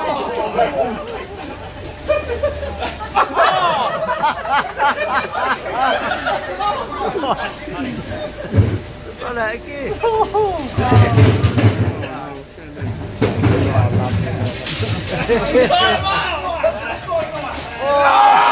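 A man shouts and laughs with animation nearby, outdoors.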